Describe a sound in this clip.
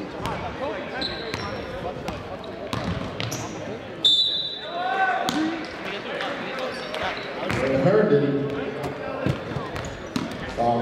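Sneakers squeak sharply on a wooden gym floor.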